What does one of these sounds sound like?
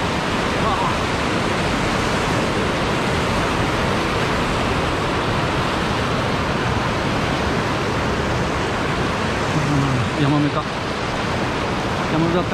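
A fast river rushes and splashes over rocks close by.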